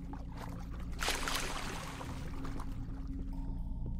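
A burst of water rushes up with a whoosh.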